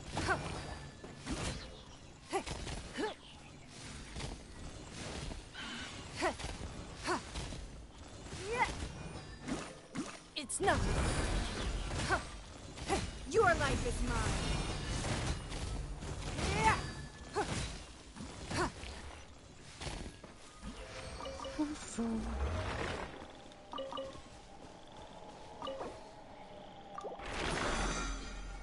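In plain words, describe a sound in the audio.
Magic blasts and sword strikes crack and whoosh in quick bursts.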